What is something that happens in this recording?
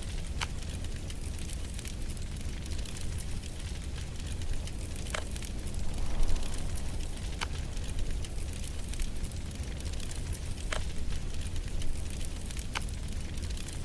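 Short game clicks sound now and then.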